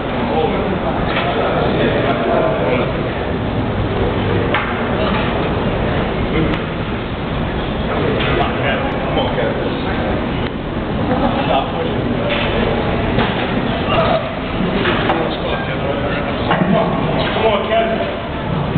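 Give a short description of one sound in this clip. Several men shout encouragement loudly and close by.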